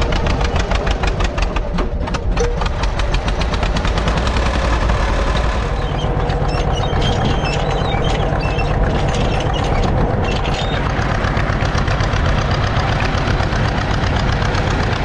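A tractor engine chugs steadily and loudly close by.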